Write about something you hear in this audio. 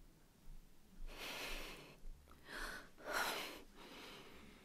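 A young woman speaks with emotion.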